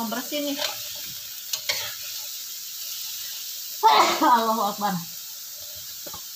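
A metal spatula scrapes and clatters against a pan.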